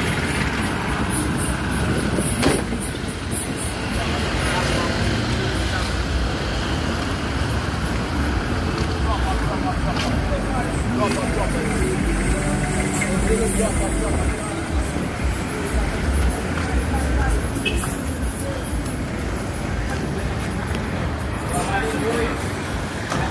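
A minibus engine idles nearby.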